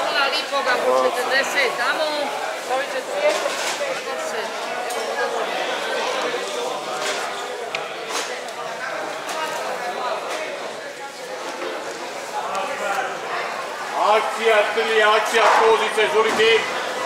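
Men and women chatter nearby in a busy, echoing room.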